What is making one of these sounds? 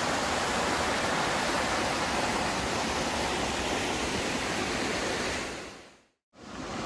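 A stream rushes and splashes over rocks.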